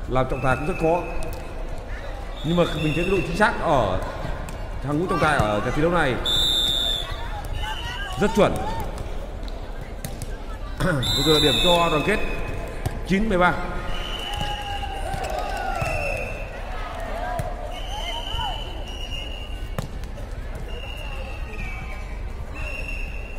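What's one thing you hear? A volleyball is struck with a dull slap.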